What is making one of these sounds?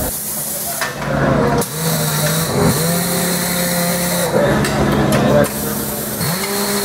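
A tyre-changing machine whirs and spins.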